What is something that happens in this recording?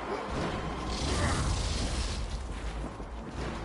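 Steam hisses loudly.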